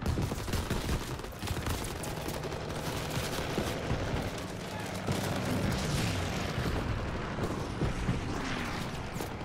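Deep rumbling booms of explosions roll on and off.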